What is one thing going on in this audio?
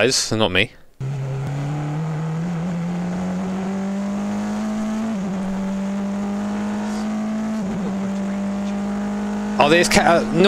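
A racing car engine drones steadily, its pitch slowly rising.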